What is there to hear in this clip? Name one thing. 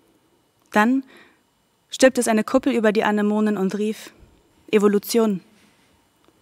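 A young woman reads aloud calmly into a microphone.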